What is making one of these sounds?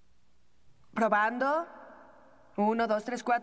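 A young woman speaks into a microphone.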